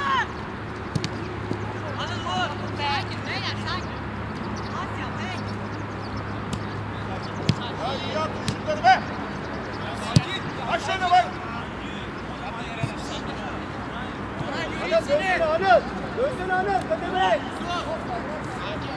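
A football thumps as players kick it.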